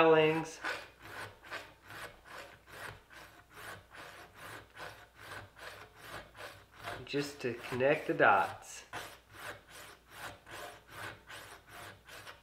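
A metal file rasps back and forth in quick, steady strokes.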